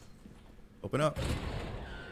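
A heavy body thuds against a metal wall.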